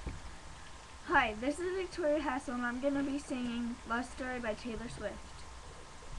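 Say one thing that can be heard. A young girl talks close to a microphone in a high, lively voice.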